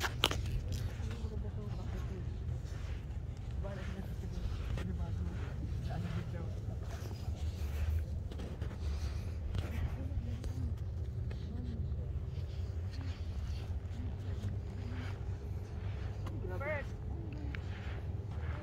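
Footsteps crunch softly in loose sand.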